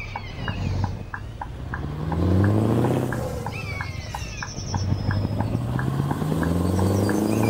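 A truck engine revs up through the gears, rising in pitch again and again.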